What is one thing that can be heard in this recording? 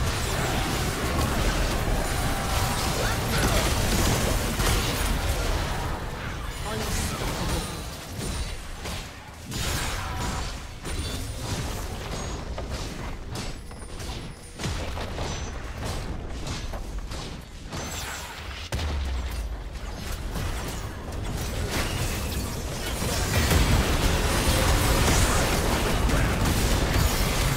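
Magic blasts crackle and boom during a fierce battle.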